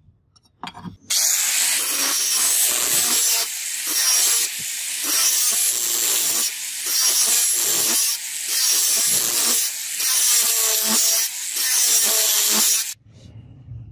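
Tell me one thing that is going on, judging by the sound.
An angle grinder whines loudly as it grinds metal in repeated passes.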